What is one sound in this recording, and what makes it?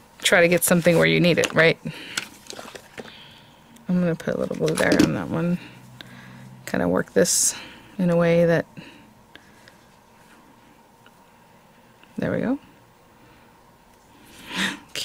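Hands press soft trim onto card with a faint rustle.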